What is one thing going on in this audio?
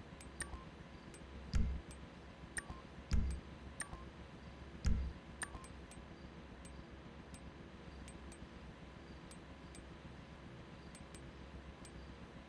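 Short electronic menu clicks tick again and again.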